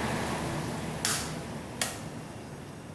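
A knife taps and cracks an eggshell.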